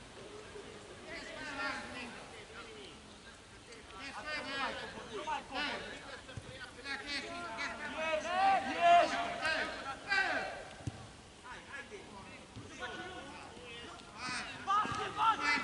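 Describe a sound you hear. Men shout to each other across an open field in the distance.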